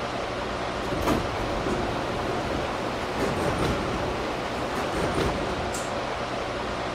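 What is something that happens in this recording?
Train wheels clank and thump over rail joints.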